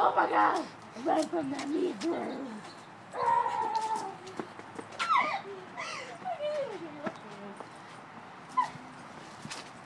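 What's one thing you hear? Young women talk and shout excitedly close by.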